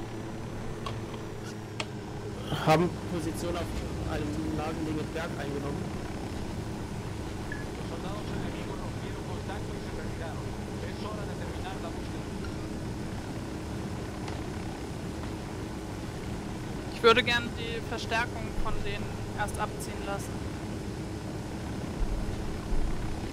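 A helicopter engine drones steadily with its rotor thumping.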